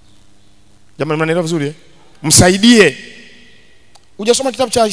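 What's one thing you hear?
A man speaks with animation into a microphone, his voice ringing through a large echoing hall.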